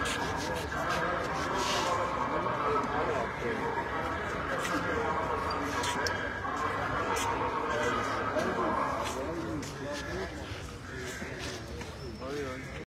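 A crowd of men and women talks outdoors in overlapping voices.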